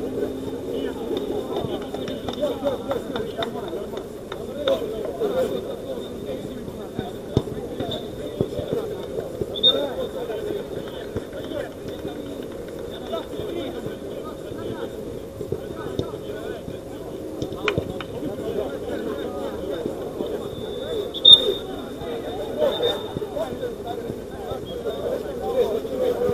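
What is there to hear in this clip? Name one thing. Men shout and call to each other at a distance outdoors.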